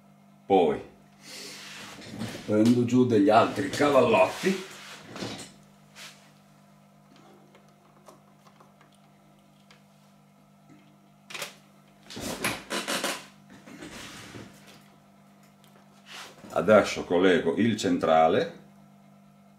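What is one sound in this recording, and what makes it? Cables and plugs rustle and click as they are handled.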